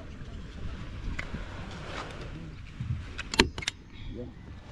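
A staple gun snaps sharply.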